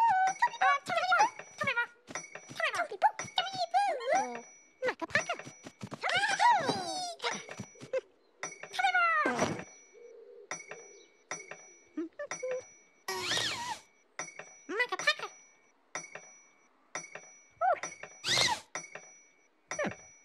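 A costumed character babbles in a high, squeaky voice.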